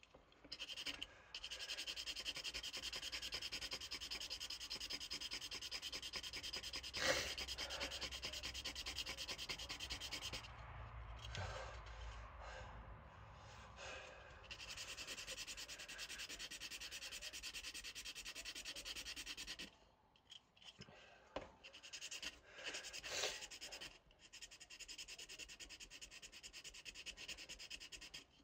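A blade scrapes rapidly across plastic close by.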